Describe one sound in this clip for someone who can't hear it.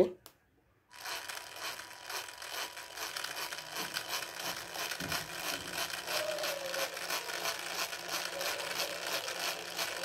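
A small electric motor whirs steadily.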